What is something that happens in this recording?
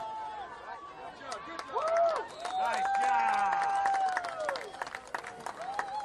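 A crowd cheers and yells outdoors.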